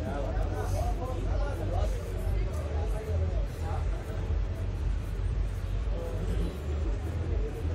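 A crowd of men and women chatter in the background.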